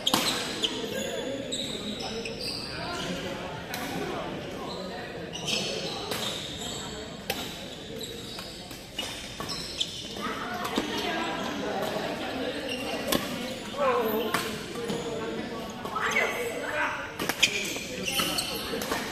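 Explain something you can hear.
Players' voices chatter in a large echoing hall.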